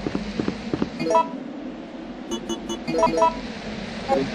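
Short electronic blips chime.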